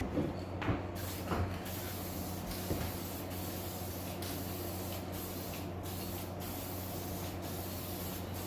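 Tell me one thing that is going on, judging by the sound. A spray can hisses as paint sprays out.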